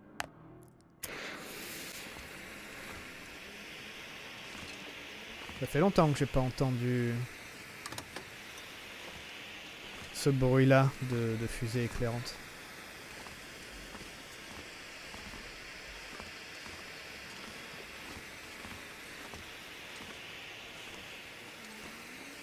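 A flare hisses and crackles steadily as it burns.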